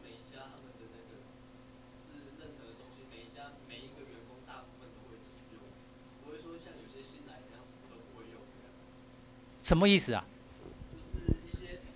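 Several young people murmur quietly in a room.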